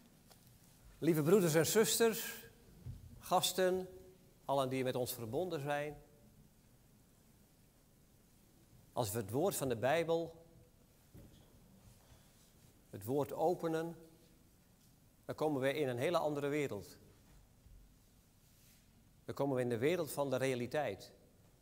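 A middle-aged man speaks calmly through a microphone in a large room, with pauses between phrases.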